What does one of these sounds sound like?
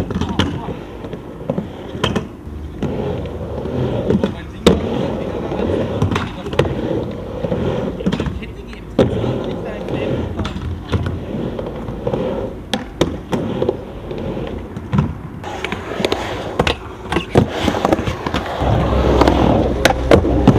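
A skateboard clacks against a wooden ramp.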